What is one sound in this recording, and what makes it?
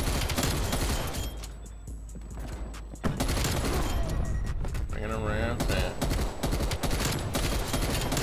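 Rapid gunfire bursts out in quick volleys.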